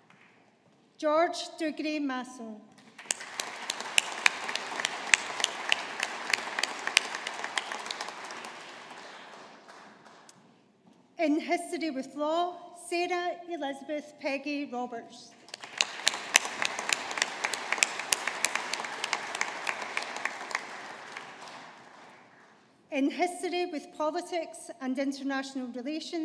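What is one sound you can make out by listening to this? A woman reads out through a microphone in a large hall.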